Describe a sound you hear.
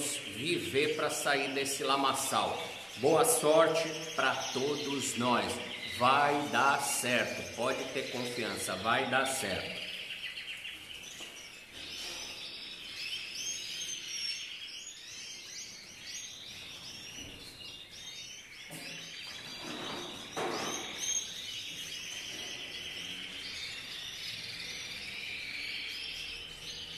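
Many small caged birds chirp and twitter all around.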